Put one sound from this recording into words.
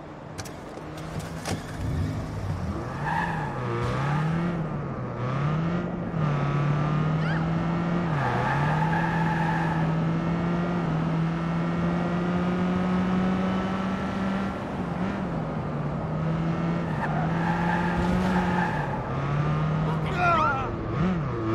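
A car engine starts, revs up and down, then hums steadily while driving.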